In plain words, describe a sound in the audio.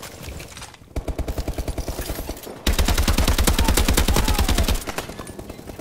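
An automatic rifle fires rapid, loud bursts of shots.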